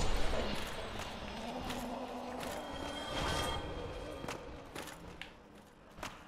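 Armoured footsteps clink and thud on stone.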